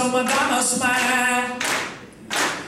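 An older man sings into a microphone.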